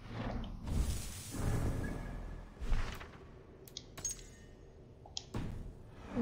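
Game menu clicks and soft whooshes sound as options change.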